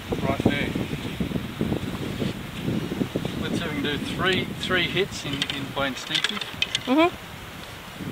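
A man speaks casually close by, outdoors.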